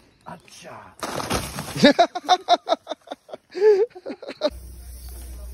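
A dead tree trunk creaks, cracks and crashes to the ground.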